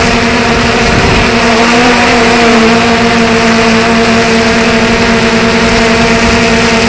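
Drone propellers whine steadily and loudly.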